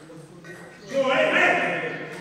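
A young man shouts out loudly.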